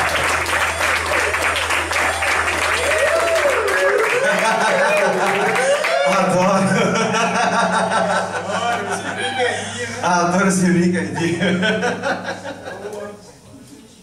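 A band plays lively music in a large hall.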